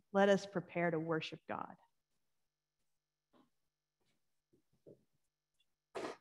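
A woman speaks calmly through a microphone in an echoing room.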